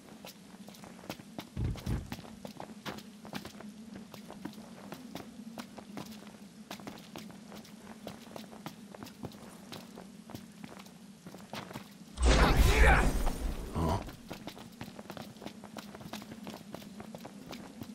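Footsteps crunch on rocky ground at a quick pace.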